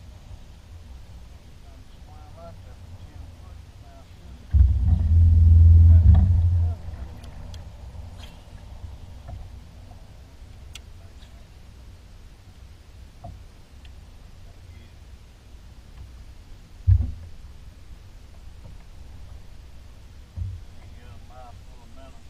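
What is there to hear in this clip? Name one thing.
Water laps gently against the hull of a boat.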